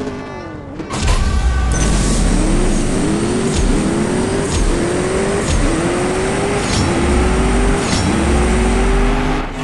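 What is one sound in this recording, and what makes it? A sports car engine roars as the car launches and accelerates.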